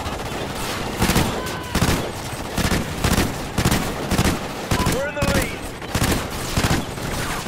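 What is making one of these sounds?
A rifle fires loud shots in short bursts.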